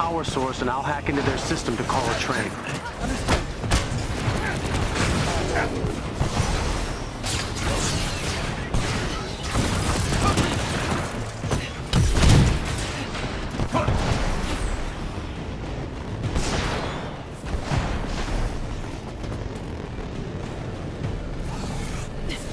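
Jet thrusters roar steadily.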